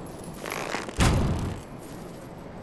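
A heavy landing hits the ground with a loud, deep thud.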